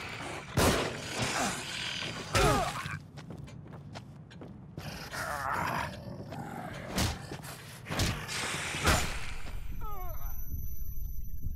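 A man growls and groans hoarsely, close by.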